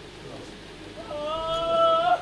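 A man chants loudly up close.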